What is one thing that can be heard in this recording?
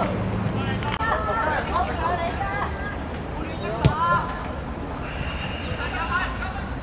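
Boys shout to each other across an open field.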